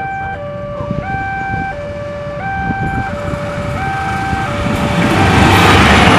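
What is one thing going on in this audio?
A diesel locomotive rumbles closer along the track.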